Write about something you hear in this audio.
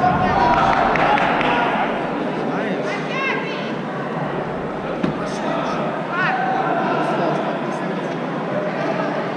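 A crowd chatters and calls out in a large echoing hall.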